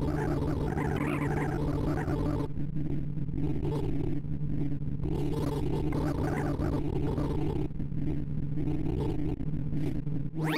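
Rapid electronic beeps chirp and sweep up and down in pitch.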